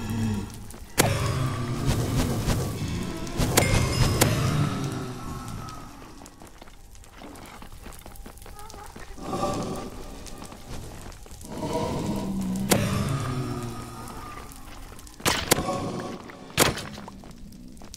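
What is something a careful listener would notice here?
A fiery creature crackles and hisses.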